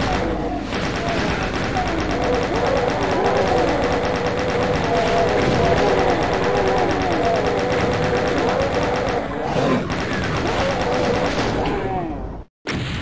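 Monsters growl and screech.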